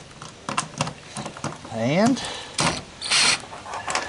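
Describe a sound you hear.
A cordless drill whirs as it drives in a screw.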